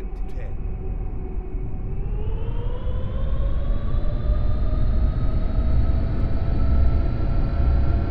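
Jet engines roar and rise in pitch as a plane speeds down a runway.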